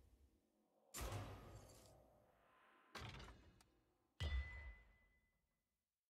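Menu sounds whoosh and thud.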